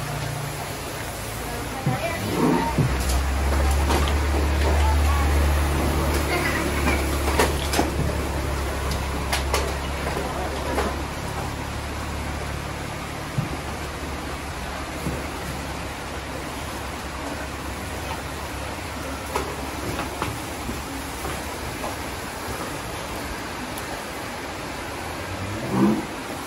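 A fogging machine engine drones steadily nearby.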